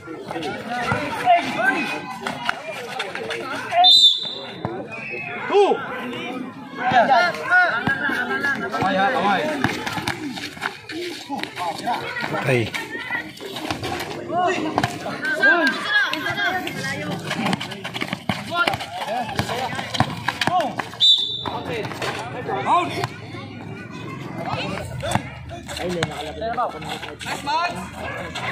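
Young men shout and call out to each other outdoors during a basketball game.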